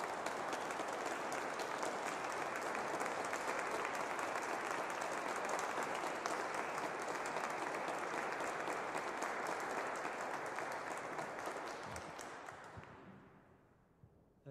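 An audience applauds in a large echoing hall, then the applause fades away.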